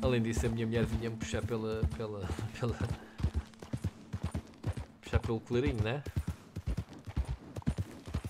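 A horse's hooves clop slowly on a dirt path.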